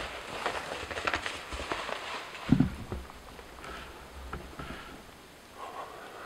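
A man's clothing rustles as he moves through brush.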